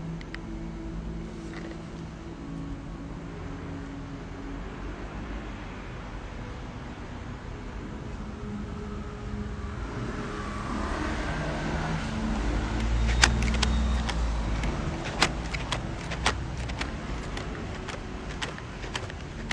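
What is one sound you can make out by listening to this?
A cardboard snack box rattles and taps as a hand handles it.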